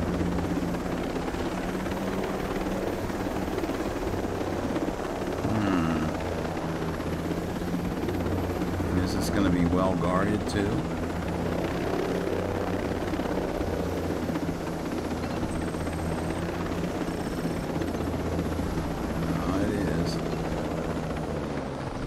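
A helicopter's rotor thumps and its engine roars steadily.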